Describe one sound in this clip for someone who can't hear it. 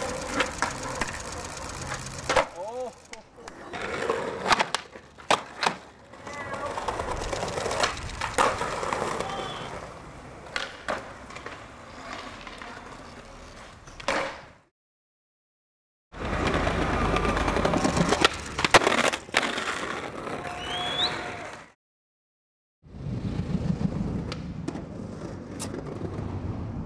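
A skateboard snaps and clacks as it lands.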